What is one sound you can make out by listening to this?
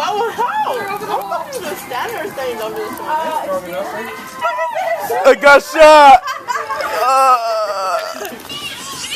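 Several people nearby talk and shout excitedly.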